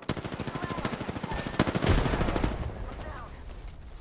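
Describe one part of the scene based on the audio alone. Rapid automatic gunfire rattles close by.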